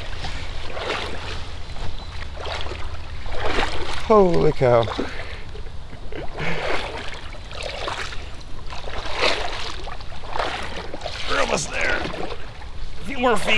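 A paddle splashes in water.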